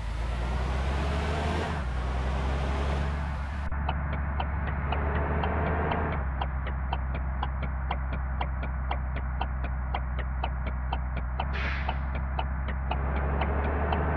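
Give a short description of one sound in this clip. A heavy truck engine hums steadily and low.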